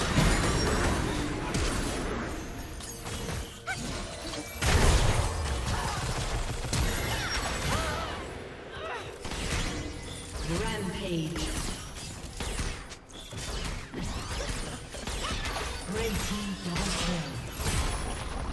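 Magic blasts crackle and thump rapidly as fighters clash.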